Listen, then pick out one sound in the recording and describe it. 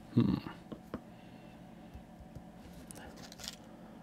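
A plastic paint pot lid snaps open.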